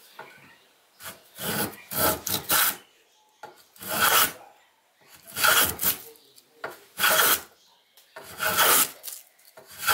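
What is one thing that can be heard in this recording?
A block plane shaves a wooden board in repeated strokes.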